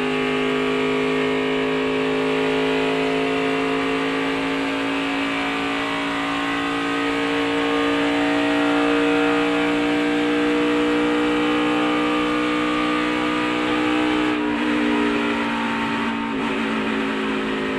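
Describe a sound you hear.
A race car engine roars loudly from inside the cabin, rising slowly in pitch and then shifting down.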